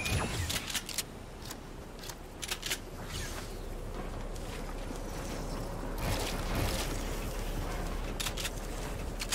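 Game footsteps patter quickly on wooden floors.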